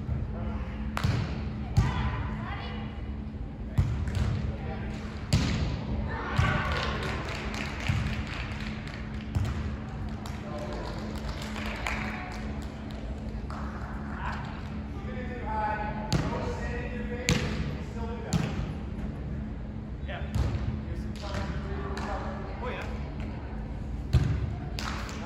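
A volleyball is struck with sharp thuds, echoing in a large hall.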